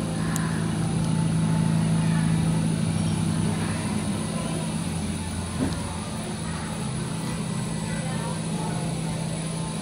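Sparks crackle and snap inside a machine.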